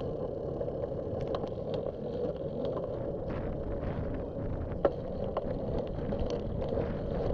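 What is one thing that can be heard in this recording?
Wind rumbles steadily against the microphone.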